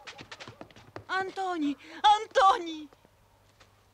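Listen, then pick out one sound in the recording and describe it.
An elderly woman speaks in alarm, close by.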